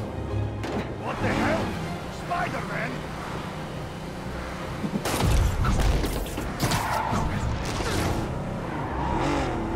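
A car engine rumbles as the car speeds along.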